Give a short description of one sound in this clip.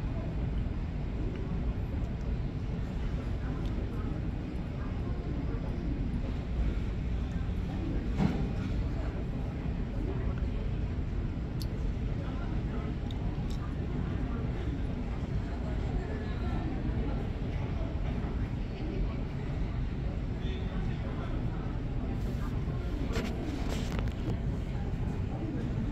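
Jet engines rumble steadily in the distance as an airliner taxis.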